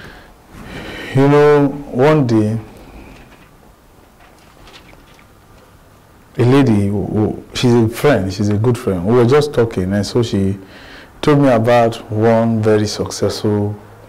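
A man speaks clearly to an audience.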